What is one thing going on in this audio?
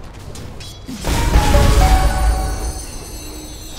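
A spell blasts with a loud magical whoosh and rumble.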